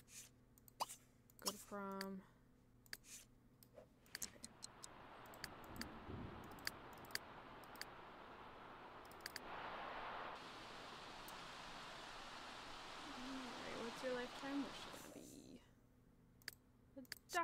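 Short interface clicks tick now and then.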